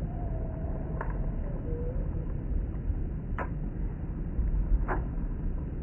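A fishing reel clicks a few times.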